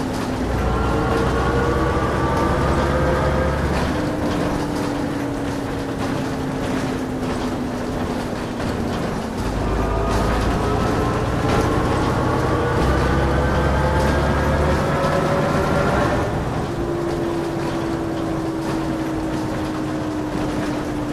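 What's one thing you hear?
A bus engine hums and rises in pitch as it speeds up through the gears.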